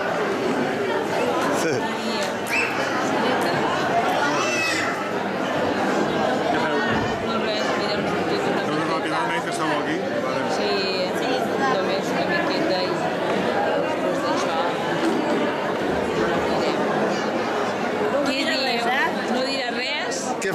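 A crowd chatters and murmurs in a large echoing hall.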